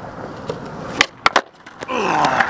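A skateboard pops and clacks sharply on the pavement.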